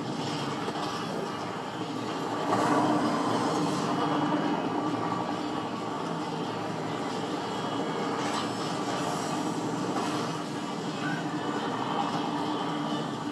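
A game helicopter's engine drones steadily through a television speaker.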